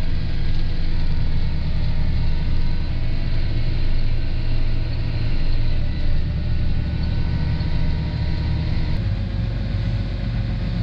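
A tractor engine rumbles steadily from inside the cab.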